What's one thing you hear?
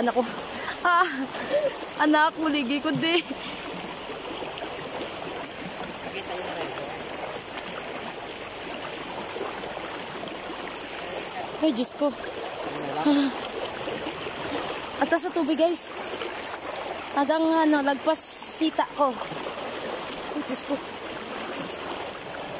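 Water splashes around legs wading through a shallow river.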